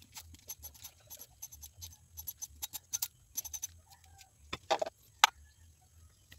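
A spray bottle squirts in short bursts.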